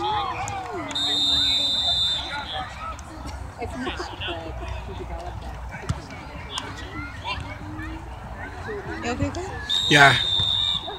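Children and adults chatter and call out across an open field outdoors.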